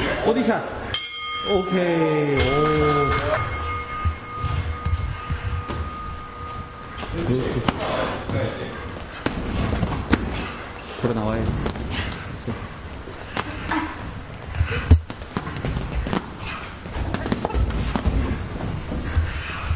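Boxing gloves thud against padded headgear and gloves.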